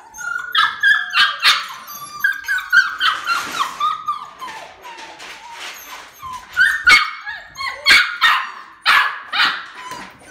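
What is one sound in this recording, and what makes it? Puppies scratch and rustle in litter pellets.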